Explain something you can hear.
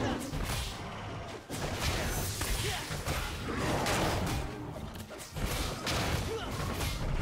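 Game sword strikes clash sharply.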